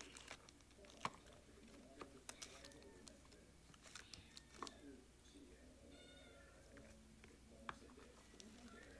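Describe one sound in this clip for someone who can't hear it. Foil wrappers crinkle and rustle.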